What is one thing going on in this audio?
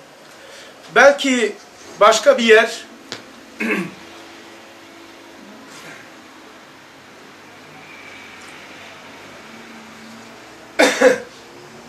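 An elderly man speaks in short, chanting phrases, close by, with pauses between them.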